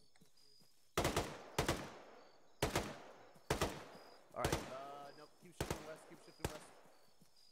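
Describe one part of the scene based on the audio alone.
Rifle shots ring out in quick succession.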